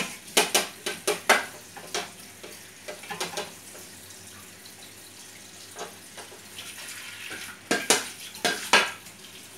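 Ceramic plates clink and clatter together.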